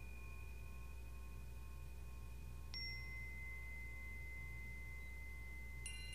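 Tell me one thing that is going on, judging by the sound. Metal chimes ring out with long, sustained tones, struck now and then.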